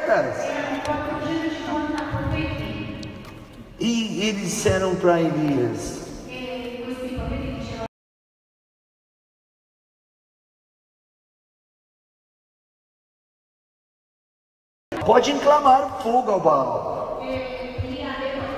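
A man sings through a microphone in a large echoing hall.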